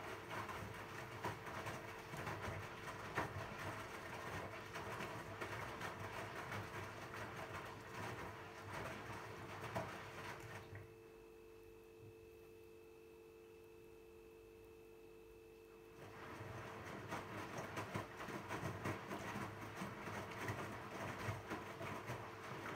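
A washing machine motor hums steadily.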